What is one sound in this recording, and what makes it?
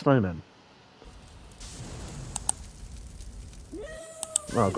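A weapon sprays fire with a rushing roar.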